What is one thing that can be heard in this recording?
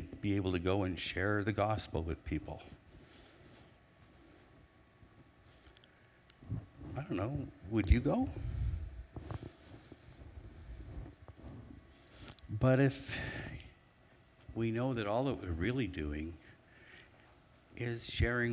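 A middle-aged man speaks through a microphone in an echoing hall, pausing between phrases.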